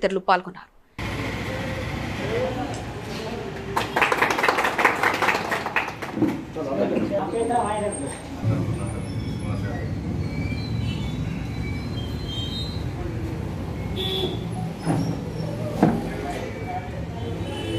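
A group of men chatter in the background.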